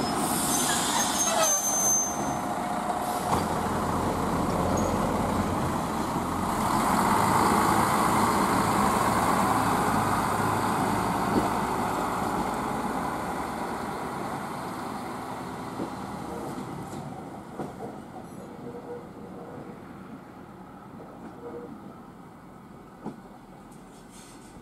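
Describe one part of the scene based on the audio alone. A diesel railcar rumbles along the track and slowly fades into the distance.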